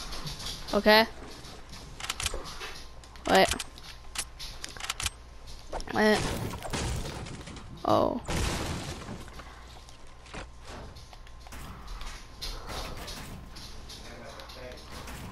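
Wooden building pieces snap into place with quick knocks and clatters.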